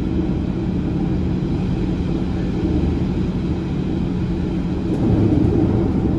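A passing train rushes by close.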